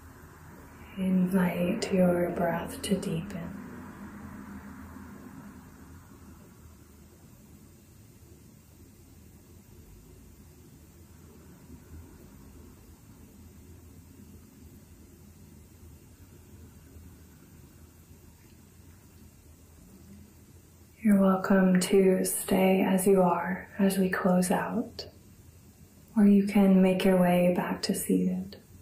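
A young woman speaks calmly and softly close to a microphone.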